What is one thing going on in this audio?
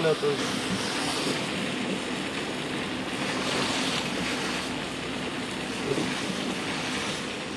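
Bicycle tyres hiss on a wet road.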